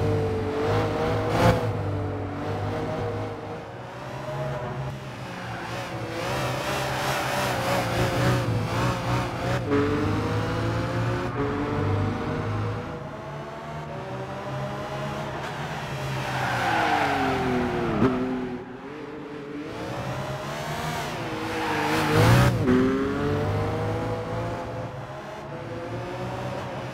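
A race car engine roars and revs up and down.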